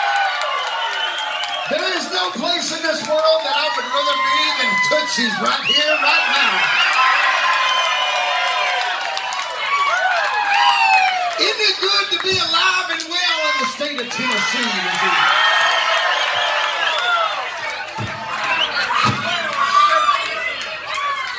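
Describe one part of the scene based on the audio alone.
A man sings into a microphone at a loud live show.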